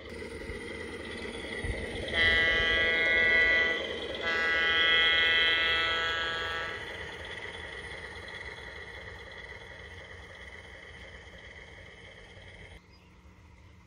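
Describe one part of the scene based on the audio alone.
A small locomotive hums as it rolls past on rails, fading away.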